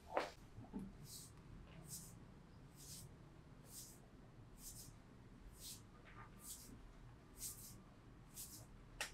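Hands rub briskly over skin.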